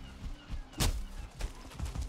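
A weapon swishes and thuds against a creature.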